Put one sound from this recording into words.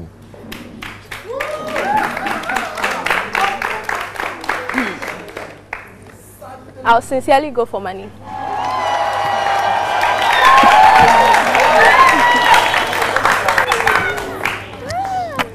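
A group of young women laughs and cheers loudly.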